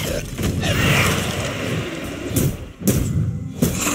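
A blade swooshes through the air in a fight.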